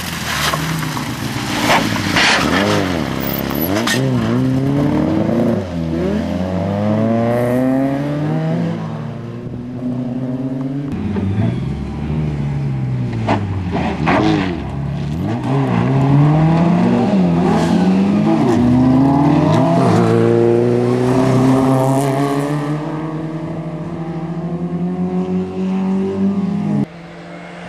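Rally car engines rev hard and shift gears up and down.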